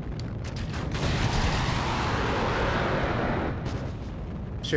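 A rocket engine roars with a steady rushing noise.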